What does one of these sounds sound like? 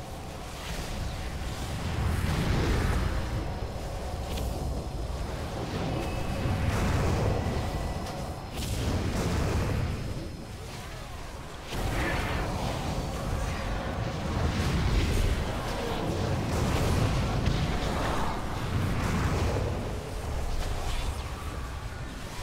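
Spells crackle and blast in a fight.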